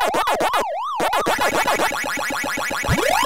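A rapid warbling tone plays while the ghosts turn blue.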